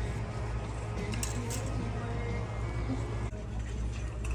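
Clothes hangers slide and click along a metal rack.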